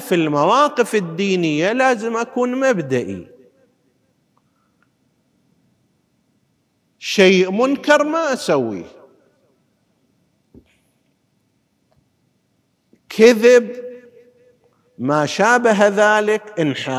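A middle-aged man speaks with animation into a close microphone, pausing now and then.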